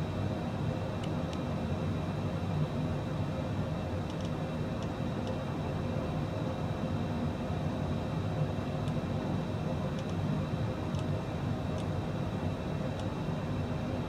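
Cockpit switches click now and then.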